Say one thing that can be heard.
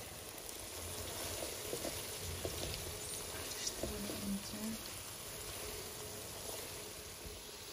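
A spatula scrapes and knocks against a pan while stirring.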